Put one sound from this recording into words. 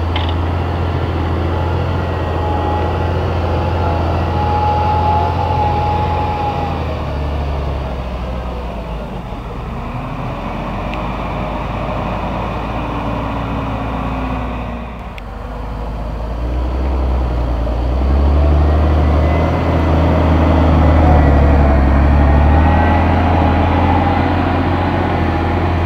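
A large tractor engine rumbles steadily nearby, rising and falling as it works.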